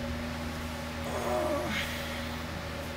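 A young woman makes a soft, sleepy murmur close by.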